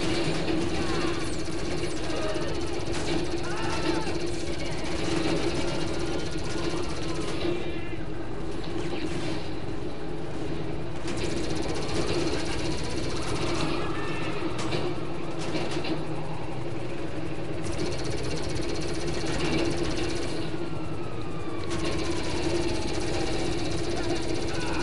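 A small engine hums steadily as a vehicle drives.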